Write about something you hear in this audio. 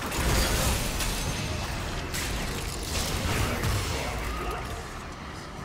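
Magic spell effects whoosh and crackle in quick bursts.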